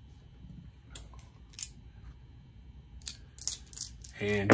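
Dice rattle and clatter in a plastic tray.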